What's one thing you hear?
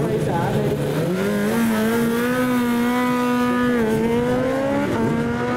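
A motorcycle accelerates hard with a rising, high-pitched engine roar.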